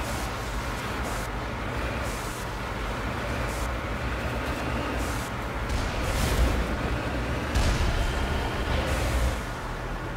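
A vehicle's engine rumbles low.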